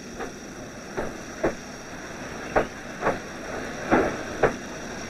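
Heavy rain falls steadily.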